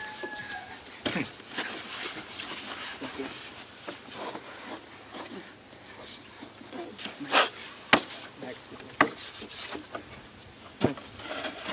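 Hands scrape and dig in loose dirt.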